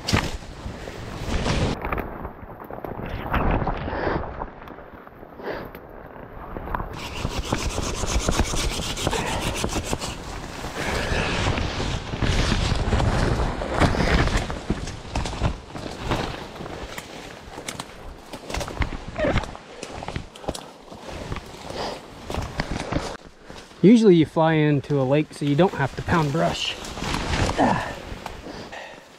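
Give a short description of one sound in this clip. Branches and leaves rustle and snap as someone pushes through dense brush.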